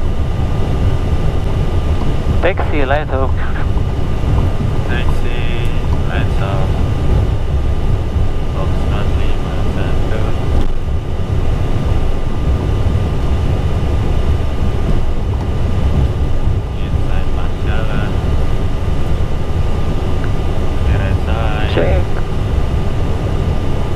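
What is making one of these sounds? Aircraft engines hum with a steady low rumble.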